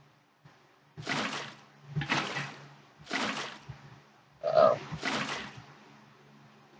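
Water splashes and gushes in short bursts as it is poured out.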